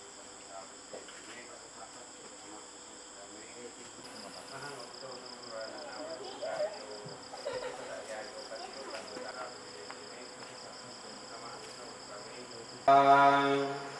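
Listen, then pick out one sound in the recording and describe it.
An elderly man speaks calmly and quietly, some distance away.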